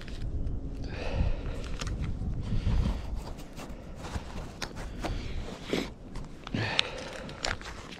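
Fabric rustles and brushes close by.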